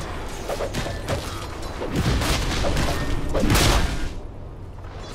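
Fighting game characters clash, with magic blasts and hits.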